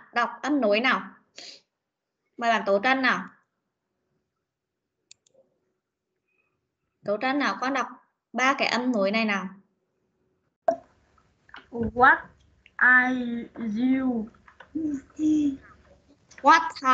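A woman speaks slowly and clearly over an online call, in short phrases with pauses.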